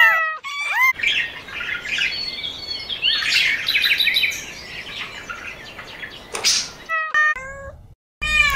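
A small bird chirps and twitters.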